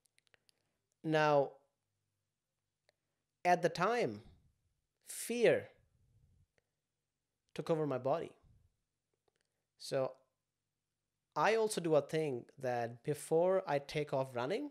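A young man speaks calmly and clearly into a close microphone, in short phrases with pauses.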